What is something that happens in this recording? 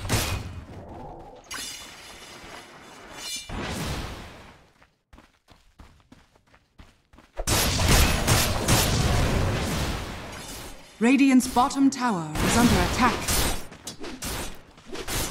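Fantasy game spells whoosh and crackle in a fight.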